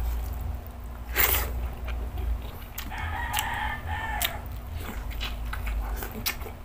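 A man chews food noisily and smacks his lips close by.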